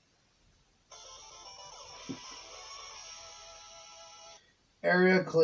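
A bright electronic video game jingle plays.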